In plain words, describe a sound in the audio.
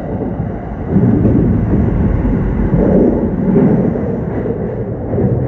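A train's rumble grows louder and echoes as it runs through a short tunnel.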